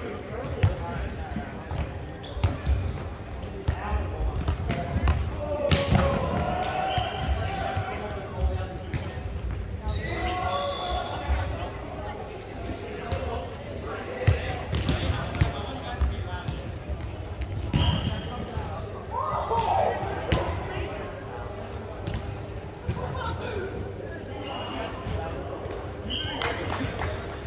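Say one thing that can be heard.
A volleyball smacks against hands, with sharp thuds echoing in a large hall.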